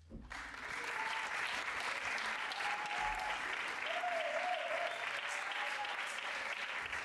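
People in the audience cheer and whistle.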